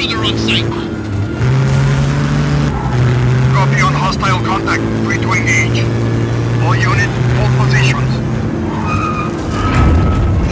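A vehicle engine hums and revs steadily.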